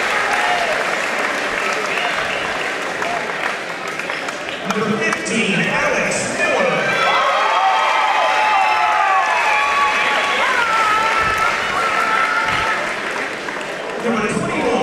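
A crowd of people chatters and cheers loudly in a large echoing gym.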